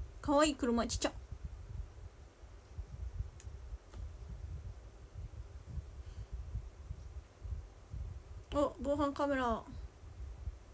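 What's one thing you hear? A young woman speaks briefly in a high voice, close to the microphone.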